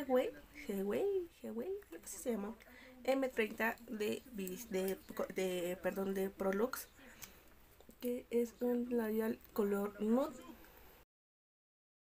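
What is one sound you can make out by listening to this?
A young woman talks close to a microphone with animation.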